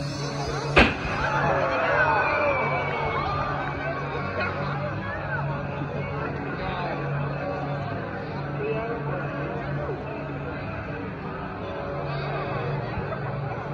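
A crowd murmurs nearby outdoors.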